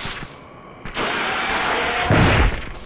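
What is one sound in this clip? A video game raptor-like dinosaur screeches.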